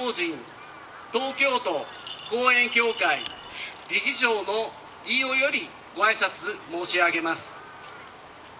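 A man calls out in a long, drawn-out chanting voice through a microphone outdoors.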